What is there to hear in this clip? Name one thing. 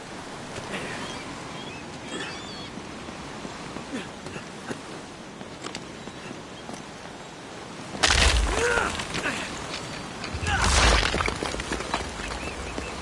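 Water rushes steadily down a waterfall.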